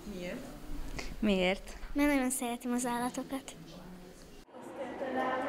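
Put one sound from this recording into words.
A young girl laughs close to a microphone.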